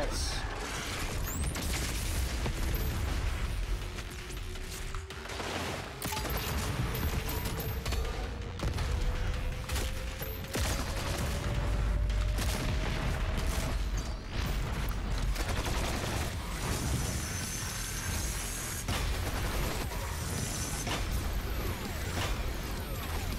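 Guns fire rapidly with heavy blasts.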